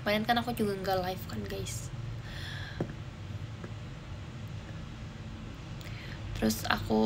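A young woman talks calmly and close up.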